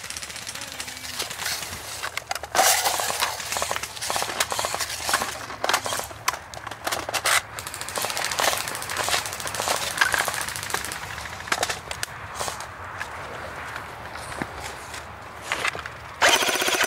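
Dry grass rustles and crackles as someone moves through it, close by.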